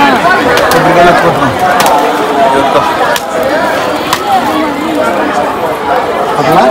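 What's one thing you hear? Coconuts crack as they are smashed on stone.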